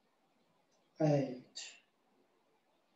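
A man speaks a short phrase calmly.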